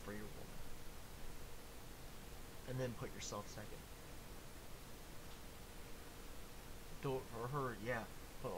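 A young man speaks casually, close to a microphone, in short bursts.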